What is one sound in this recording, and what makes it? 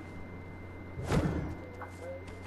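A figure lands with a heavy thud.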